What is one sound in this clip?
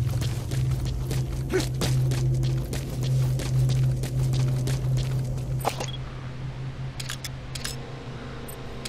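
Footsteps crunch quickly over rough ground.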